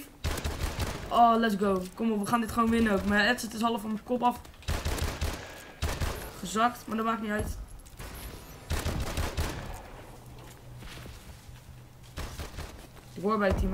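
Gunfire from a video game bursts repeatedly.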